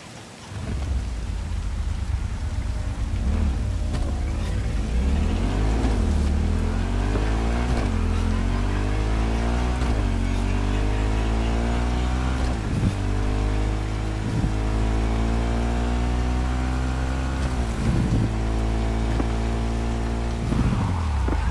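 A motorcycle engine revs up and drops repeatedly as it shifts through the gears.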